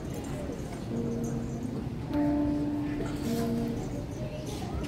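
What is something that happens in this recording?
A piano plays a few notes in a large hall.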